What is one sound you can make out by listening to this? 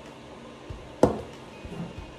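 A plastic jug knocks once against a wooden surface.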